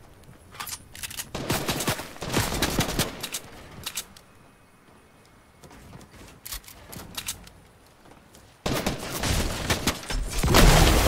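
Footsteps patter quickly on grass and wooden ramps.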